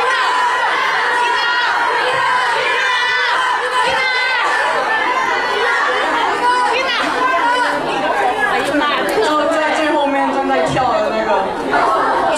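Young men and a young woman sing together into microphones through loudspeakers, over backing music.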